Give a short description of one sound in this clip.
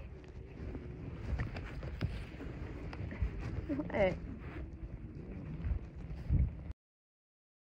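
A horse breathes close by.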